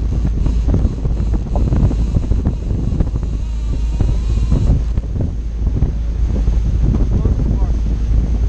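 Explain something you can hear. A boat's wake churns and splashes behind it.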